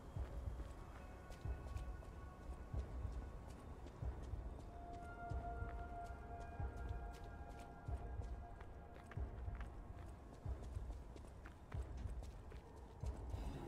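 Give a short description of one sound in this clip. Footsteps thud quickly on wet stone.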